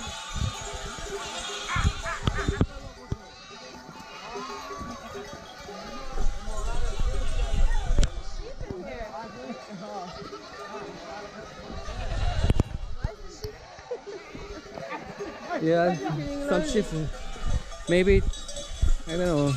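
A large flock of goats bleats all around.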